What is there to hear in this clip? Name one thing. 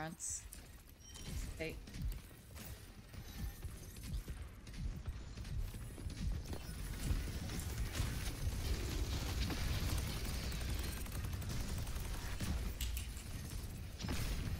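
Game gunfire and effects crackle and boom.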